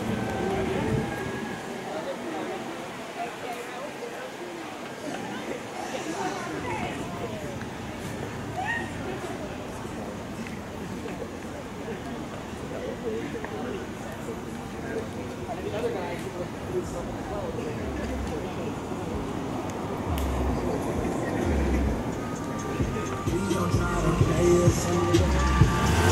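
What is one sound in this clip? A crowd of people talks and chatters outdoors at a distance.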